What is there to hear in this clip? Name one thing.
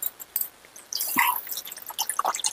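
Water splashes as it is poured into a pot of sauce.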